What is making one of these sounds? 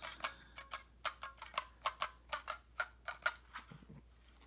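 Plastic buttons click rapidly on a toy guitar controller.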